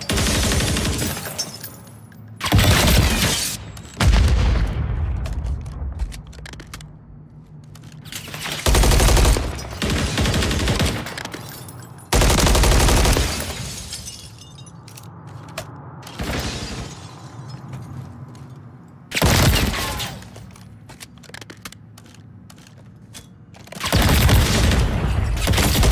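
Gunfire from a video game rattles in loud bursts.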